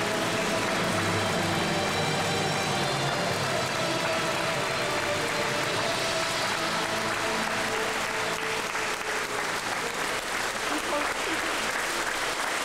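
A large choir of children and young people sings together in a large echoing hall.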